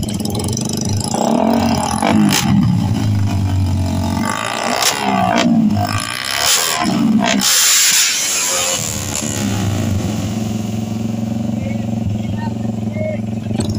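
Small motorcycle engines rev loudly and crackle.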